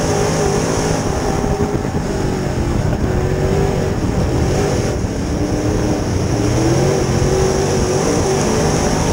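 Other race cars roar past on a dirt track.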